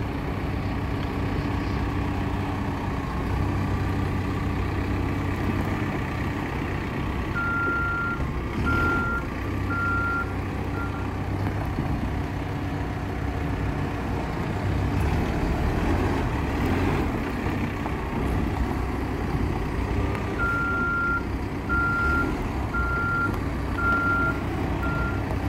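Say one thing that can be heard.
A diesel backhoe loader's engine runs as the machine drives.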